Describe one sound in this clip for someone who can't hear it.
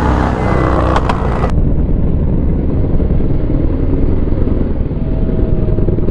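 A second motorcycle engine rumbles close by as it passes.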